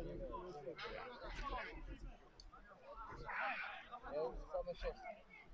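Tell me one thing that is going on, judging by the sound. Young men shout to each other outdoors across an open playing field.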